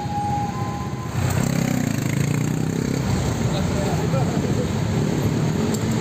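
A motorcycle engine rumbles nearby.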